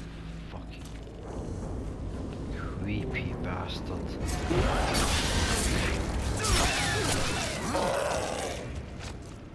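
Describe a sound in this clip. A monster snarls and shrieks up close.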